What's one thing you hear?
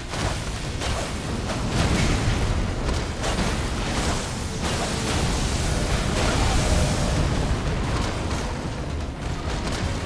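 Heavy blows crash and rumble in a fierce battle.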